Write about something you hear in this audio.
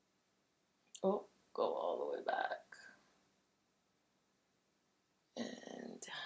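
A young woman speaks briefly close by.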